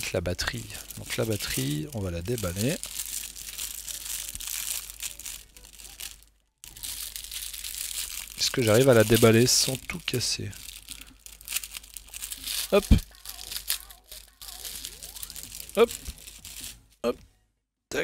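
Plastic wrapping crinkles and rustles close by.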